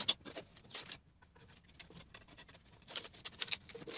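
Thin wooden pieces knock and tap against each other on a wooden bench.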